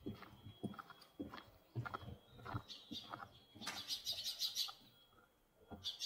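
Footsteps scuff on a hard path.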